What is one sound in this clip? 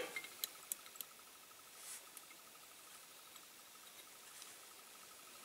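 Small plastic parts click and tap as fingers handle them.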